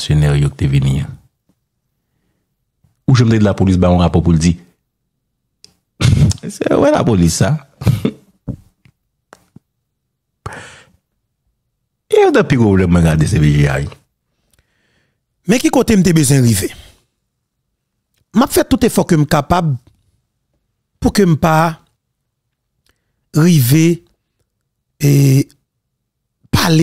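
A man speaks into a microphone close up, in short bursts with pauses.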